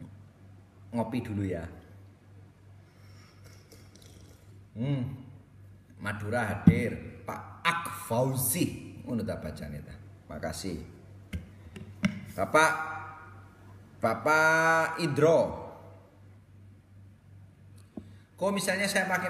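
A young man speaks with animation close to the microphone.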